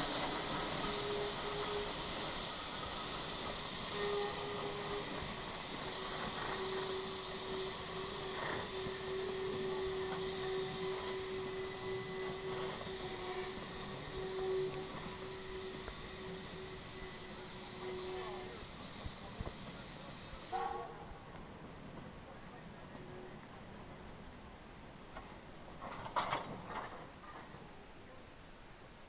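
Train cars rumble and clatter over the rails.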